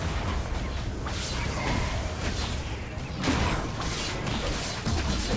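Game spells whoosh and crackle during a battle.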